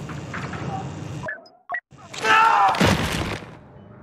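A soldier's armour clatters to the floor as he collapses.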